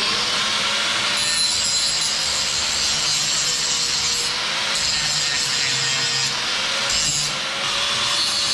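An angle grinder whines loudly as it grinds metal.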